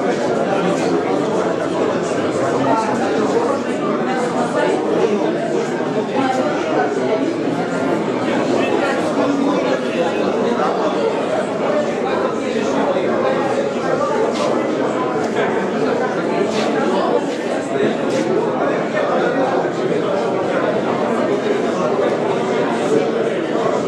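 A crowd of men and women chatter in a large echoing hall.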